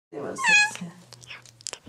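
A cat meows loudly close by.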